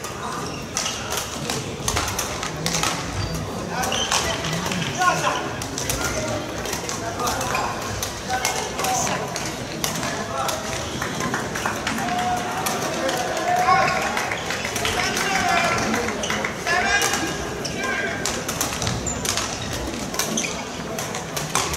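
Shoes squeak sharply on a hall floor.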